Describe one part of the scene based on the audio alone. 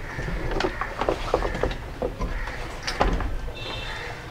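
A heavy battery knocks and clunks as it is set into place.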